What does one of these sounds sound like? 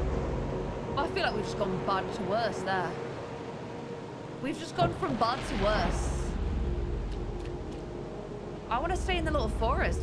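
A young woman speaks with feeling into a close microphone.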